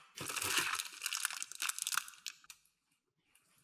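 A plastic bag crinkles and rustles in a hand.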